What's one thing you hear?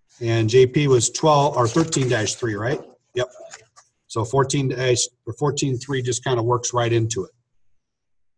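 A man talks calmly and steadily close to a microphone.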